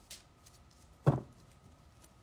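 A card taps onto a table.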